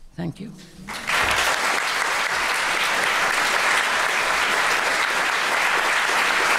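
An audience applauds loudly and steadily.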